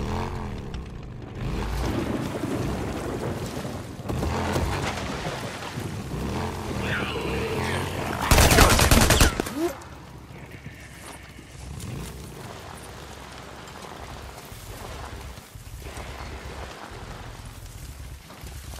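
A motorcycle engine rumbles and revs as the bike rides over rough ground.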